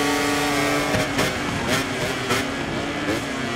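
A motorcycle engine pops and crackles as it slows down.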